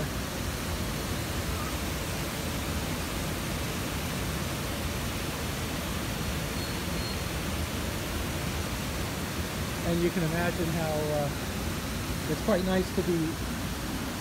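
Water rushes steadily over a low weir outdoors.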